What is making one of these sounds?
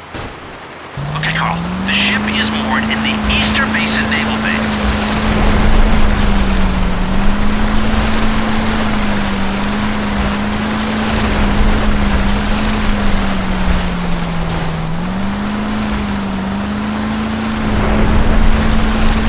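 Water splashes and rushes against a boat's hull.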